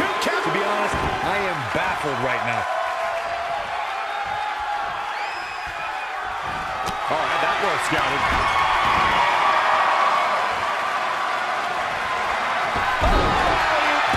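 Wrestlers' bodies thud heavily onto the ring mat.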